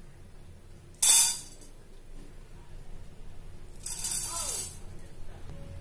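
Dry lentils pour from a spoon into a metal pan with a sharp rattle.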